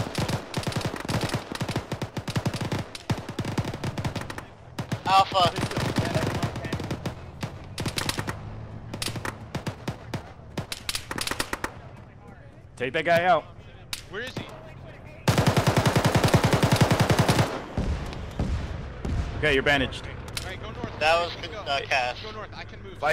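A machine gun fires in rapid bursts close by.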